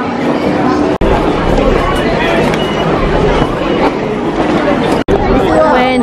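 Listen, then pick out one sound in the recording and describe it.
A crowd of people walks across a hard floor with many footsteps.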